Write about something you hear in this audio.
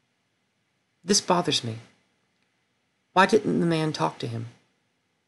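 A young woman speaks calmly and close to a microphone, in two short phrases.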